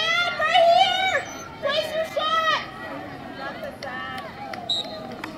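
Young women shout loudly outdoors in short bursts.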